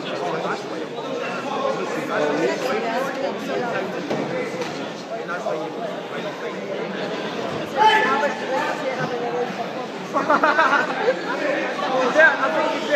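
A crowd of spectators chatters and shouts loudly in a large echoing hall.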